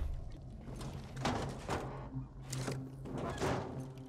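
A switch clicks as it is pressed.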